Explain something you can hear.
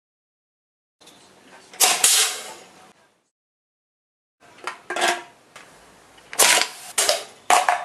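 An aerosol spray can hisses in short bursts.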